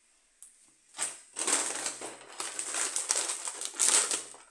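A snack packet crackles loudly as it is handled.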